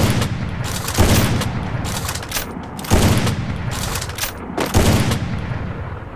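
Heavy rifle shots boom one at a time, each followed by a rolling echo.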